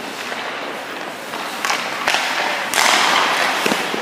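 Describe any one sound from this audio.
A goalie's pads thud onto the ice.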